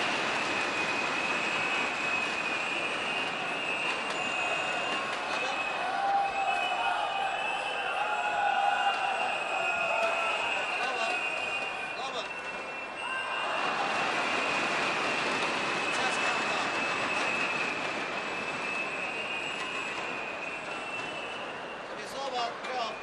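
A large crowd cheers and murmurs in an echoing hall.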